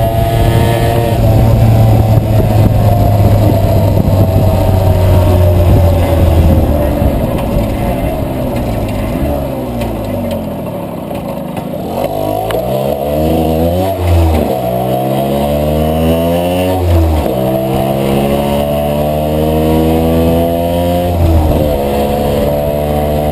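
A motorcycle engine rumbles close by, slowing down and then revving up through the gears.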